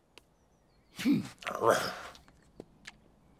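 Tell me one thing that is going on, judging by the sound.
A cartoon dog grumbles and mutters.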